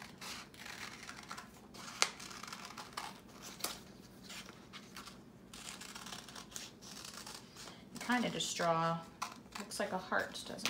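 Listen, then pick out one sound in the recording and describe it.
Small scissors snip through paper.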